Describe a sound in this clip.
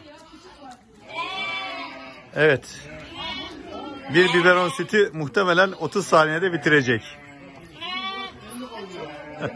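A lamb bleats loudly nearby.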